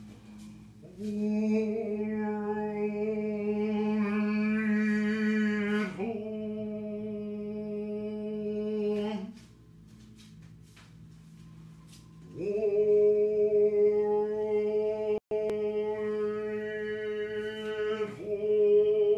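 A woman chants long, steady, drawn-out notes close by.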